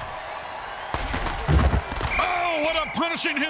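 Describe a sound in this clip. Heavy thuds sound as players crash together in a tackle.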